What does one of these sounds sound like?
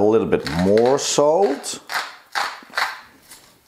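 A pepper mill grinds with a dry, crunching rasp.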